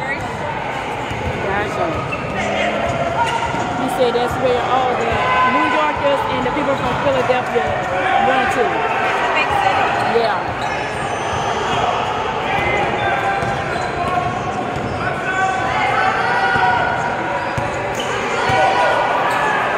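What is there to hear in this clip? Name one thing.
A basketball bounces on the court as a player dribbles.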